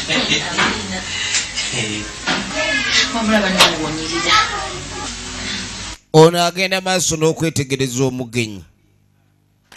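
A young woman speaks and laughs.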